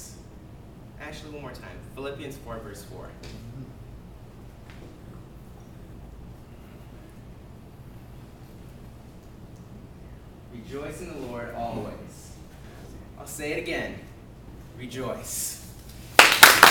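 A young man speaks into a microphone in a large echoing room.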